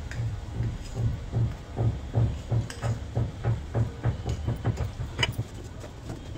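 A spatula stirs and scrapes food in a metal pan in a quick, even rhythm.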